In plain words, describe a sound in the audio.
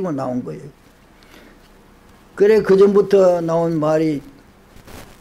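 An elderly man speaks slowly and clearly into a microphone, with pauses.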